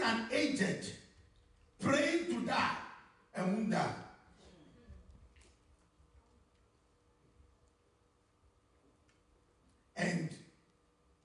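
A man preaches loudly with energy through a microphone, in short bursts.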